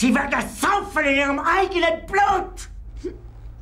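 An older man shouts angrily and close by.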